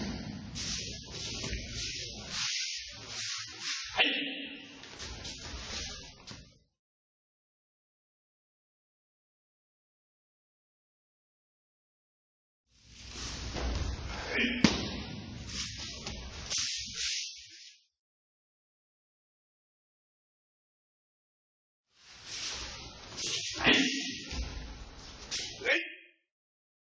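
Heavy cloth rustles and snaps as two men grapple.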